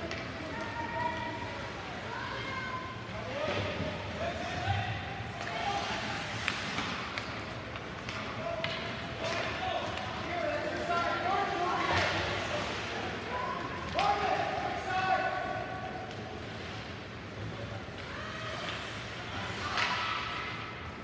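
Young players and spectators shout and call out in an echoing rink.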